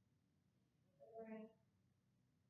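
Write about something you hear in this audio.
A young woman speaks briefly and calmly nearby.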